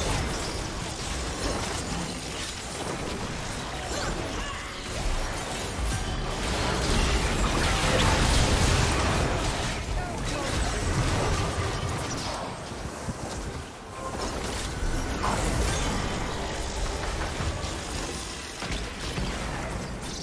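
Spells and attacks crackle and boom in a fast game battle.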